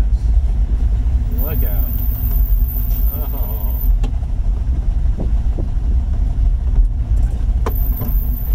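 A small car engine hums and rumbles steadily.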